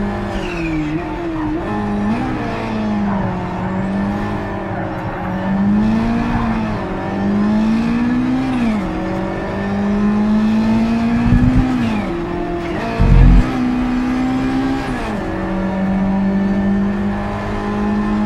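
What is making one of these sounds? A racing car engine roars, its pitch rising and falling with the gear changes.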